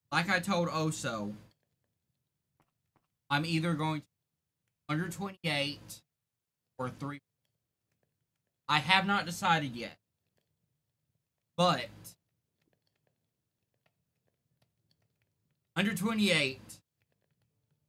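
A young man talks with animation into a close microphone, in short bursts with pauses.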